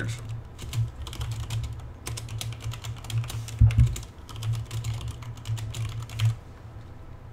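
Keyboard keys clatter in quick bursts of typing.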